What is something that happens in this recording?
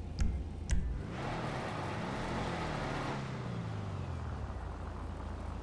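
A car engine rumbles as the car drives off, its sound fading.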